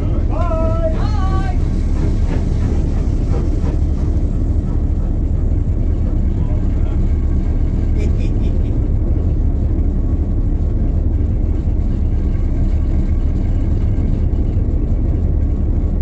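A steam locomotive chuffs heavily.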